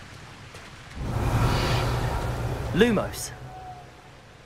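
A magical whoosh rings out with a rising shimmer.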